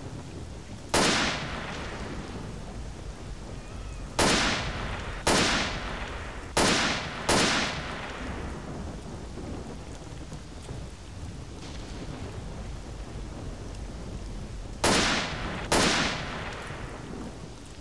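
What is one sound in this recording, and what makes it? Rifle shots ring out one at a time and echo away outdoors.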